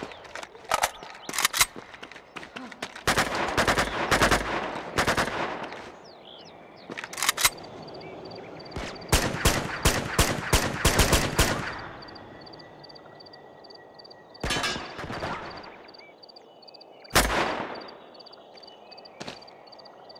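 Gunshots crack in quick bursts with echoing tails.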